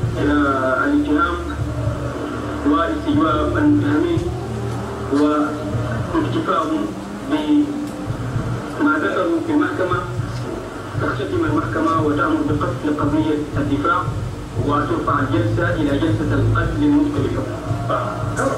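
A man speaks steadily into a microphone, heard through a loudspeaker in a room.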